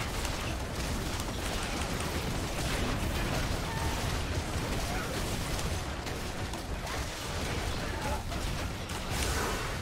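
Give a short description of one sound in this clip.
Video game combat effects whoosh and clash rapidly.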